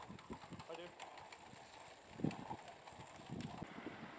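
Bicycle tyres roll over brick paving.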